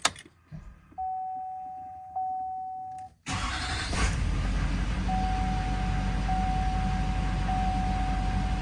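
A steady warning chime sounds from a dashboard.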